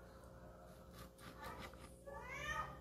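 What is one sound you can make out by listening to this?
A cleaver chops through meat on a cutting board.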